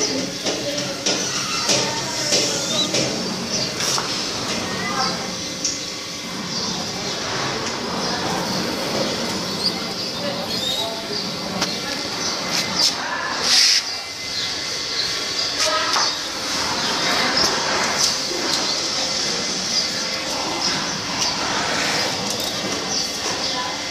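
Pigeons coo softly and steadily close by.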